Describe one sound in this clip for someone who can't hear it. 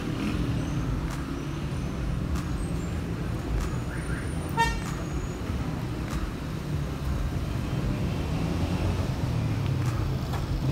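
Traffic rumbles steadily along a city street outdoors.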